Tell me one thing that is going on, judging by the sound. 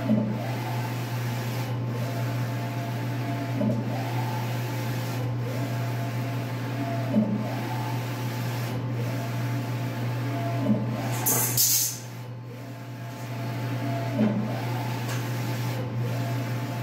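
A wide printer hums steadily as its print head whirs back and forth.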